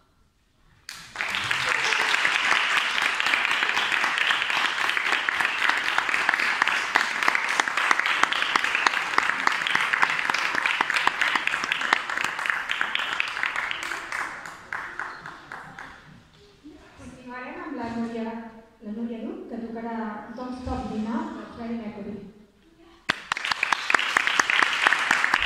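An audience applauds in an echoing hall.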